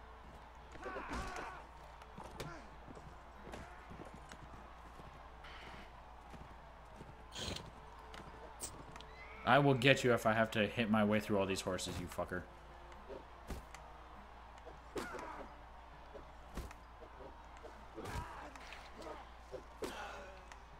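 Horse hooves thud on dry ground.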